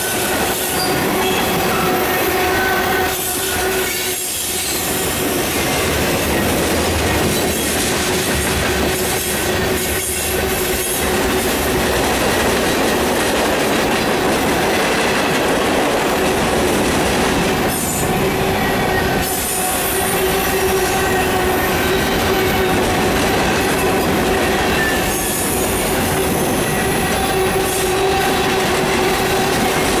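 Wheels clack rhythmically over rail joints.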